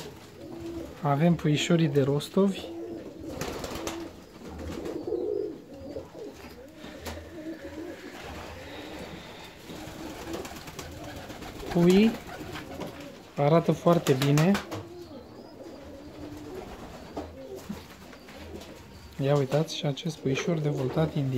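Pigeons coo with low, rolling calls close by.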